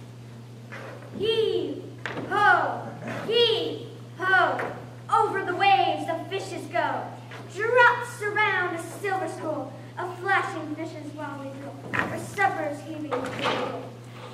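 A young woman speaks loudly and dramatically in an echoing hall.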